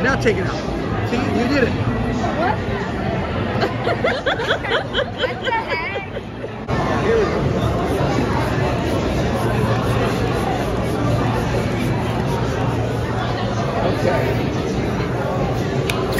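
A crowd chatters in a busy, noisy room.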